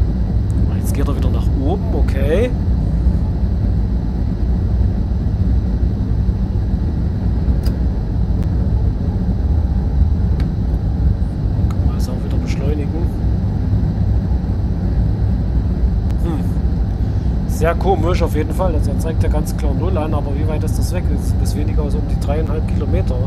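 A train rumbles steadily along the track through a tunnel.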